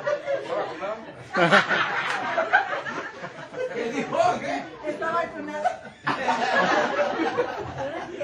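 A band of men sings together loudly close by.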